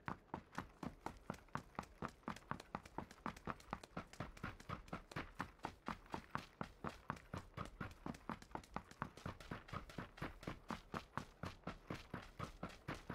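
Footsteps run quickly and steadily over hard ground.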